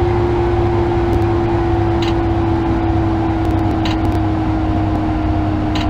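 An electric train motor whines steadily, its pitch slowly falling as the train slows.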